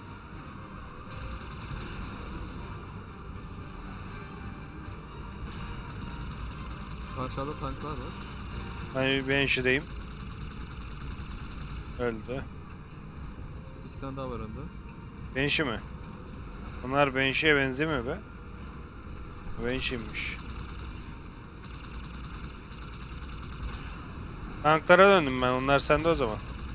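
A hovering craft hums steadily in a video game.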